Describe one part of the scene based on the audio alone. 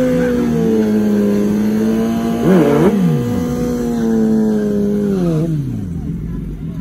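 Motorcycle engines idle loudly and rev in bursts.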